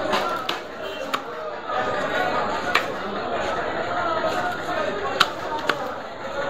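A heavy knife chops into fish on a wooden block with sharp thuds.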